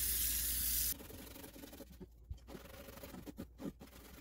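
A cloth scrubs against a ridged metal pan.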